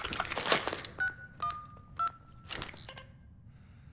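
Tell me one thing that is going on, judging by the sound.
An electronic device beeps several times.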